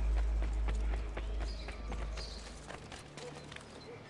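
Footsteps patter quickly across a rooftop.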